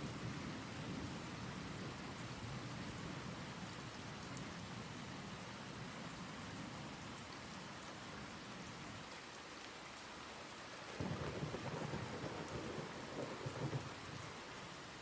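A young man speaks calmly and quietly close to a microphone.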